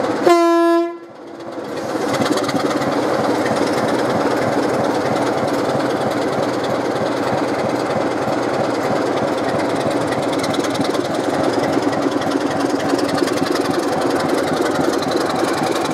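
A diesel locomotive engine rumbles and throbs as it moves slowly forward.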